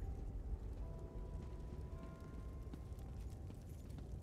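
A fire crackles softly in a fireplace.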